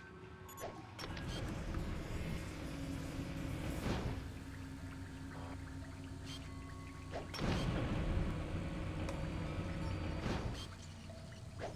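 An electric barrier crackles and hums.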